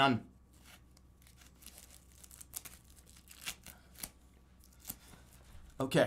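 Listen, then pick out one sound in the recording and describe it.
Tape rips and crinkles in a young man's hands.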